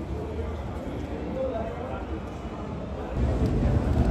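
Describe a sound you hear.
A group of young people chatter at a distance.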